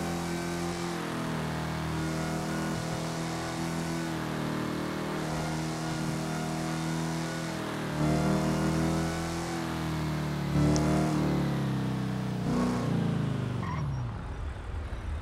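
A car engine drones steadily, then winds down as the car slows.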